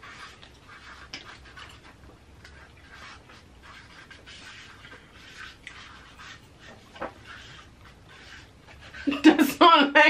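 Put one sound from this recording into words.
Paper rustles and crinkles as it is folded and torn.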